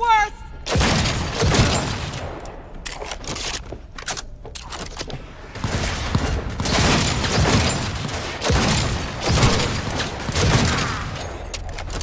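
A pistol fires shots in bursts.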